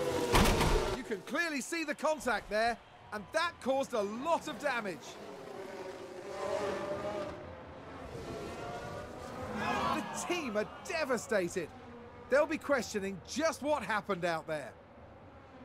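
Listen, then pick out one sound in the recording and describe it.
A man shouts excitedly into a close microphone.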